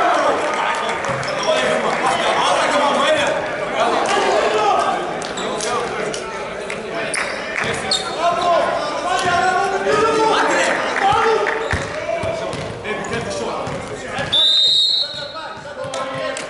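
Several men talk and call out to each other in a large echoing hall.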